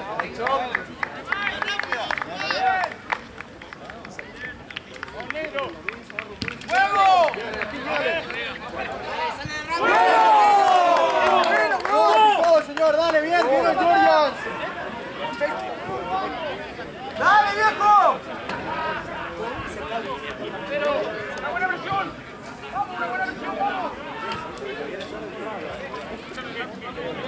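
Men and women in a nearby crowd shout and cheer outdoors.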